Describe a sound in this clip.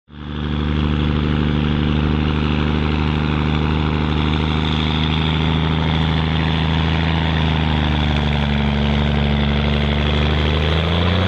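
Truck tyres grind over loose dirt.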